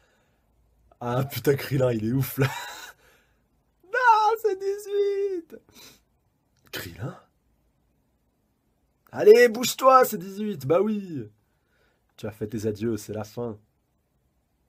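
A young man talks and laughs close to a microphone, in short bursts with pauses.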